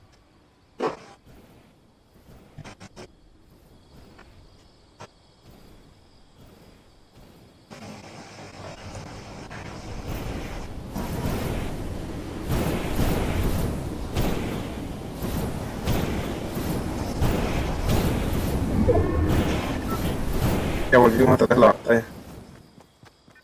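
A jetpack hisses and roars steadily.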